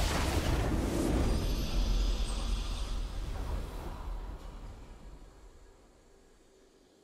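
A triumphant game fanfare booms and slowly fades out.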